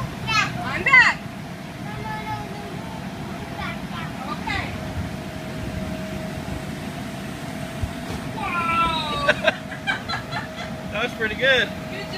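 A young child squeals and shouts excitedly nearby.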